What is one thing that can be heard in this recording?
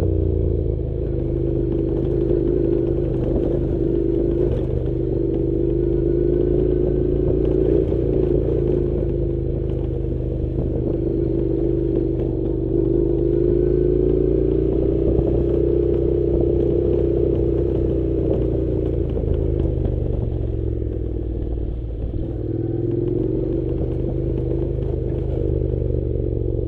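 Tyres crunch over a gravel track.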